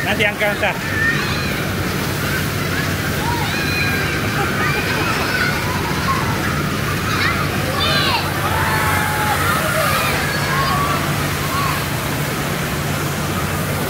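Children shout and squeal playfully in the distance.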